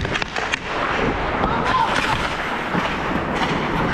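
Hockey sticks clack against the ice.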